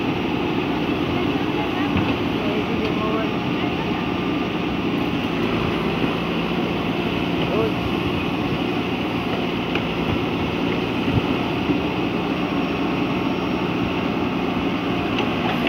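A backhoe bucket scrapes and digs into soil.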